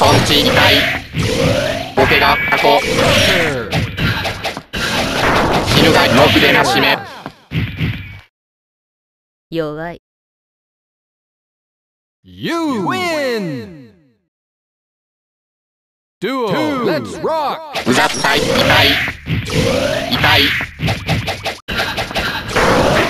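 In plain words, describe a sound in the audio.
Fighting game sound effects of punches, kicks and energy bursts clash rapidly.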